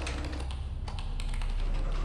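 Fingers tap on a computer keyboard.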